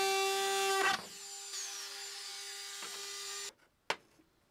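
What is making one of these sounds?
A power rotary tool spins down.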